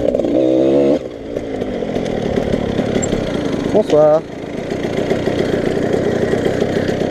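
A second motorbike engine idles nearby.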